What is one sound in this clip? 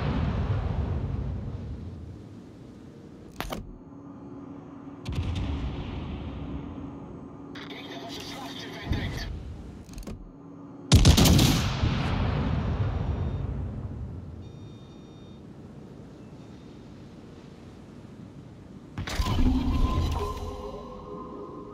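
Heavy naval guns fire in salvos, each with a deep boom that rolls away.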